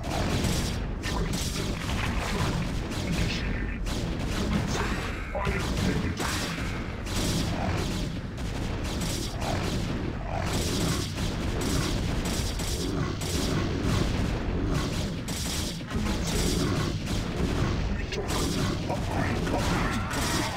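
Laser-like zaps and crackles of a video game battle sound rapidly.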